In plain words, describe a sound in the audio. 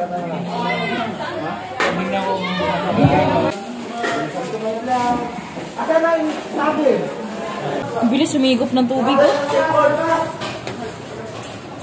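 Several men and women talk and call out close by with animation.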